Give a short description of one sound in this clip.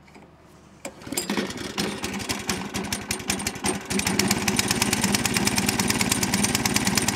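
A small petrol engine starts and runs with a steady rapid chug.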